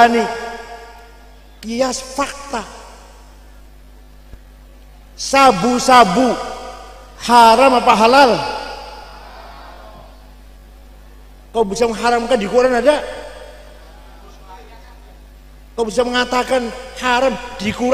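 An elderly man speaks slowly into a microphone in short phrases, with his voice echoing in a large room.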